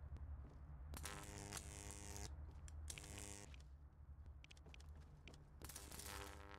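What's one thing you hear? Game building sounds clatter in quick bursts.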